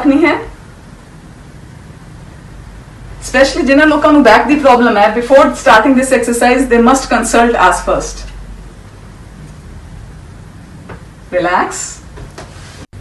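A woman speaks calmly and clearly, close by, as if explaining.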